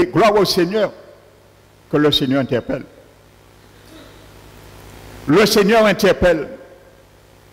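An elderly man speaks calmly in short phrases through a microphone, with pauses between them.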